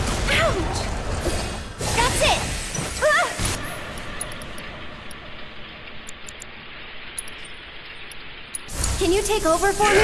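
Magic spells crackle and burst with bright whooshes.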